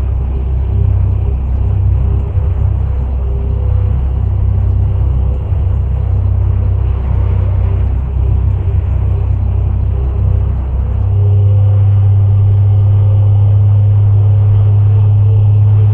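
A truck engine rumbles steadily as it drives down a road.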